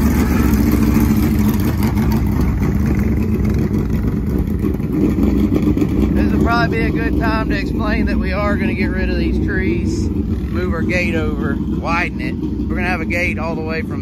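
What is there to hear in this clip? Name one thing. A quad bike engine hums steadily.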